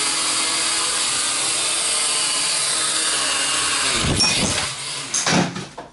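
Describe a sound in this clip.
A small drone buzzes as it flies around.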